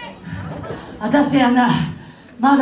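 A woman speaks loudly into a microphone, heard through loudspeakers.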